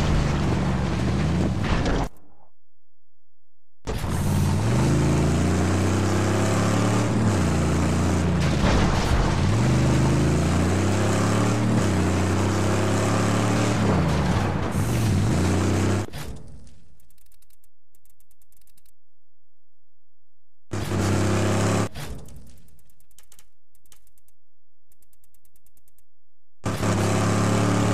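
Tyres skid and grind over gravel.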